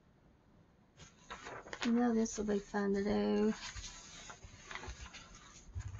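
A paper page rustles as it is turned.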